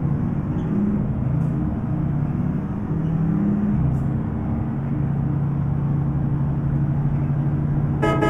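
A bus engine hums steadily as it drives along.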